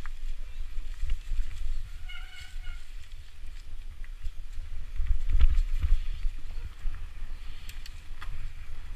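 A bike's frame and chain clatter over bumps.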